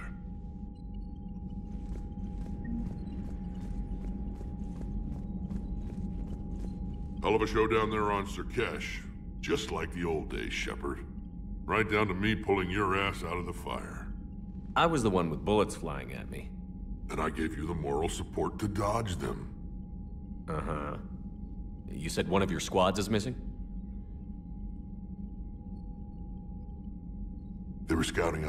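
A low, steady hum drones throughout.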